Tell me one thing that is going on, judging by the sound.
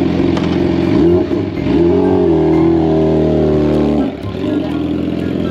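A motorcycle engine revs up and down, then pulls away.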